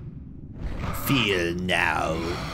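A man speaks close to a microphone in a casual, thoughtful tone.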